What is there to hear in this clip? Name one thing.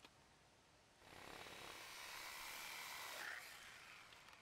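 A saw rasps steadily through wood.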